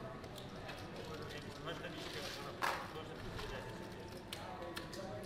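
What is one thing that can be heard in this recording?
Casino chips click against each other.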